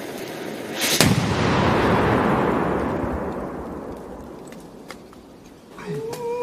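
A large firecracker explodes with a deafening bang that echoes and rumbles away through the woods.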